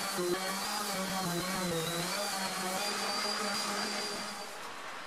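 An electric sander whirs steadily against wood.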